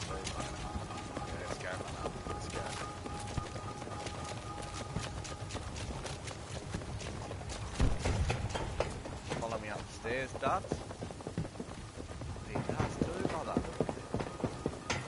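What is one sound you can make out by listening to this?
Footsteps clank quickly on metal stairs.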